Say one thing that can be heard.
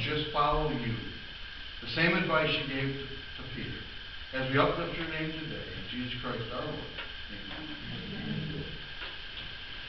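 A middle-aged man speaks calmly, heard through a microphone in a room with some echo.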